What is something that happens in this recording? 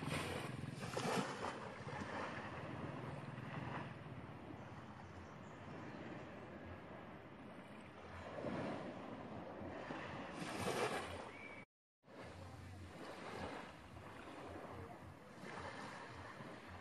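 Small waves wash gently onto a beach.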